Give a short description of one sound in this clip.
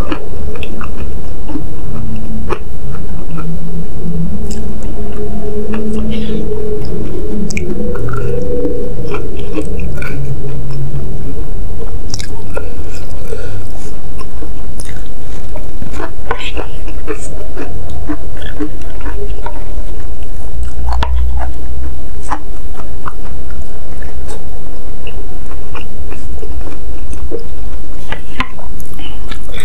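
Wooden utensils click and scrape against a bowl.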